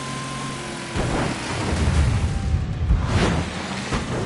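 Tyres rumble and crunch over a rough dirt track.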